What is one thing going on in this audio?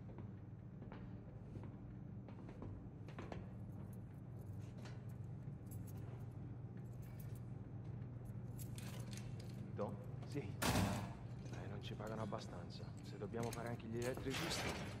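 Footsteps clank on metal grating stairs.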